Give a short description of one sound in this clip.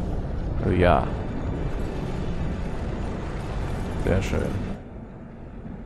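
A deep magical rumble swells and whooshes.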